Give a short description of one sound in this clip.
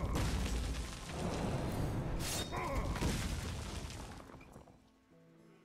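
A magical blast whooshes and crashes.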